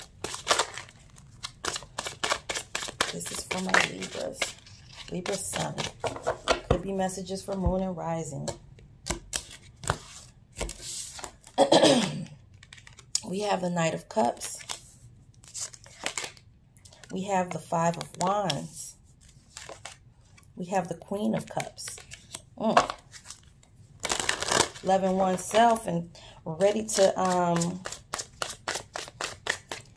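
Playing cards riffle and flick as they are shuffled by hand.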